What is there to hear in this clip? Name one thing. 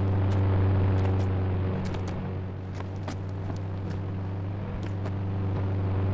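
Footsteps clank on a metal ladder.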